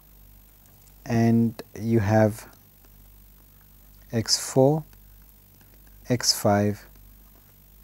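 A man speaks calmly and slowly into a microphone, in short phrases with pauses.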